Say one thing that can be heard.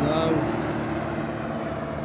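A van drives past on the road.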